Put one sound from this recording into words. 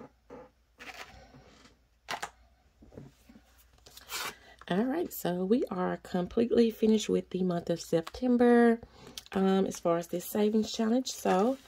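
A stiff paper card rustles and taps as hands handle it.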